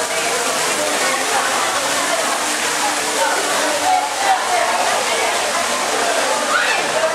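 Water splashes and sprays down steadily.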